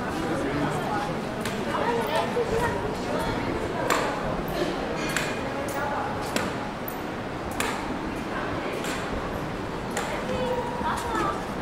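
Footsteps echo under a stone colonnade.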